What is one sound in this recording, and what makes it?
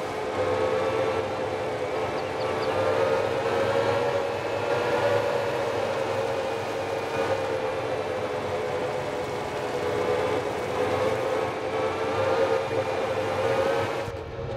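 Tyres roll over rough ground.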